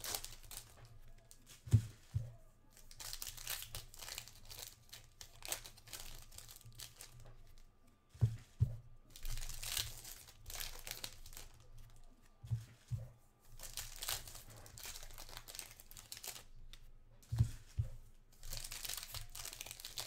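Plastic wrappers crinkle and rustle in hands close by.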